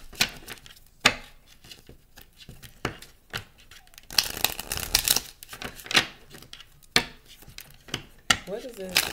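Cards tap and knock on a wooden table.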